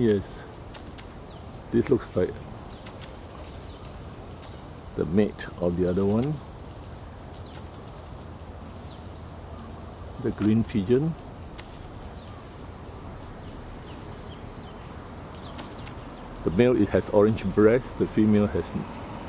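Leaves rustle softly in a light breeze.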